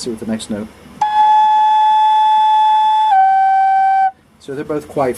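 An electronic tuner sounds a steady reference tone that steps down in pitch.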